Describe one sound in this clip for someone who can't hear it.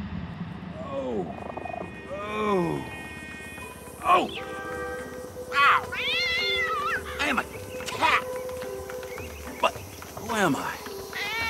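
A dog-like animal yelps and whines with sliding cries.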